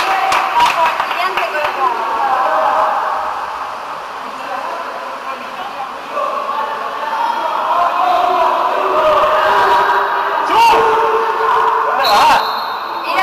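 Water splashes and churns as swimmers thrash in an echoing indoor pool.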